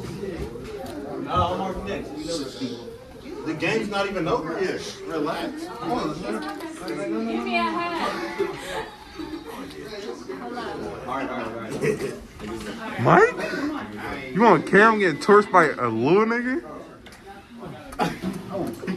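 A crowd of young men and women talks and laughs loudly nearby.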